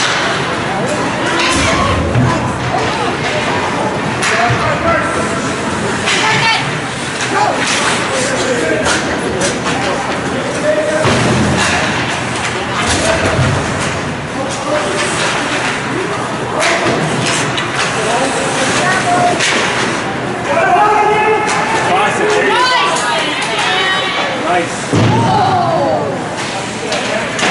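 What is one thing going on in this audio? Skate blades scrape and hiss across the ice.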